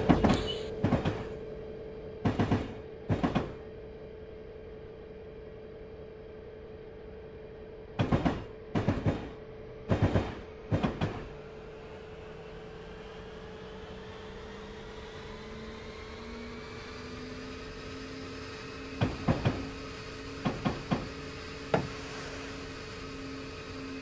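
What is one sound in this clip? A locomotive engine hums steadily and rises in pitch as the train speeds up.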